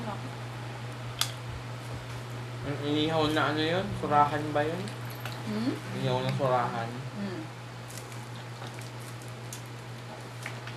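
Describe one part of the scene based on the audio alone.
Hands crack and pick at crab shells.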